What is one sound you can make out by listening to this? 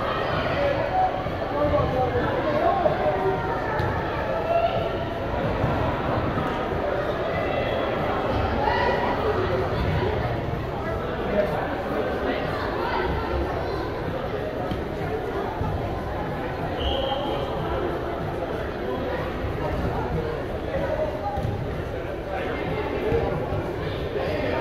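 A soccer ball is kicked with dull thuds.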